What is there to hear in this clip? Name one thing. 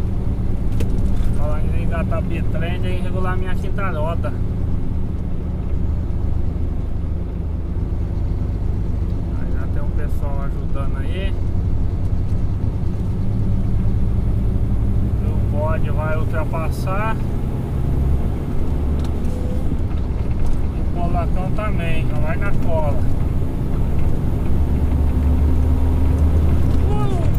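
A vehicle engine drones steadily while driving.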